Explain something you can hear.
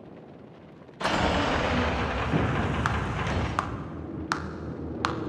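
Heavy doors swing open with a rumble.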